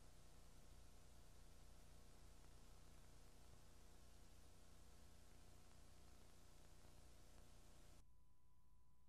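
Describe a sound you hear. Ventilation fans hum and hiss steadily.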